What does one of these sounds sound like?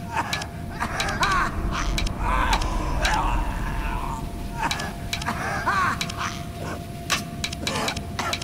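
A metal ring clicks and grinds as it turns.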